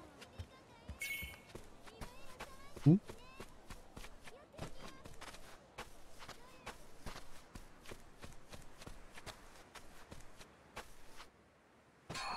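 Footsteps tread steadily over wooden boards and dirt.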